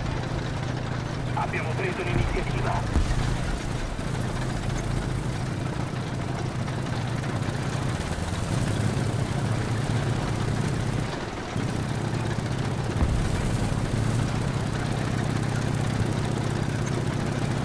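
Tank tracks clatter and squeak over the ground.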